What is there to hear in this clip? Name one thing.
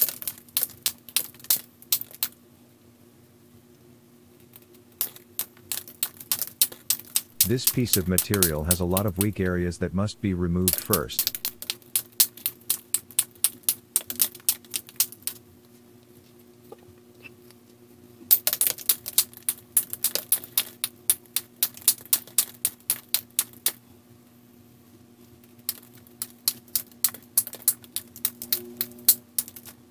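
A knife shaves wood in quick, rapid strokes.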